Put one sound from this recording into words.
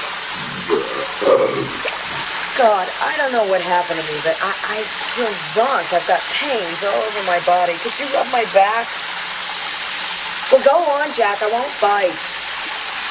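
A man talks quietly nearby.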